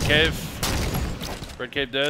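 A rifle butt strikes with a heavy thud.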